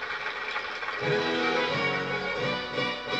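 A band plays music through a television loudspeaker.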